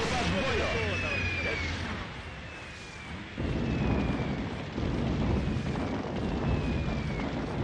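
Tank guns fire in bursts.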